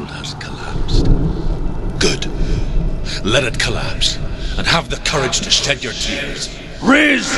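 A man speaks in a low, strained voice.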